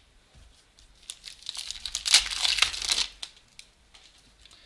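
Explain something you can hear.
Hands rustle and rub close by, brushing against the microphone.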